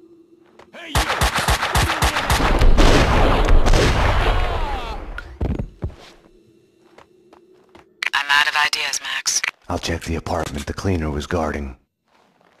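Gunshots fire rapidly in quick bursts, echoing loudly.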